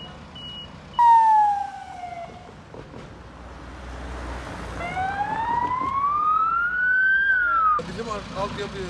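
An ambulance siren wails, rising and falling in pitch.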